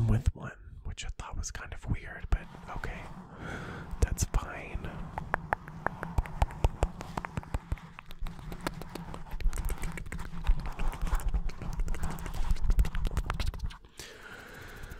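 Fingers tap and scratch on a microphone with quick, crackling clicks.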